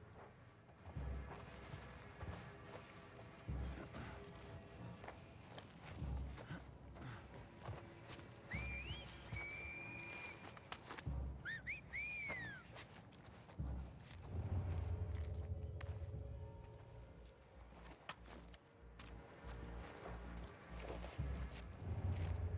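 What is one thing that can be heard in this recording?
Footsteps shuffle softly over rubble.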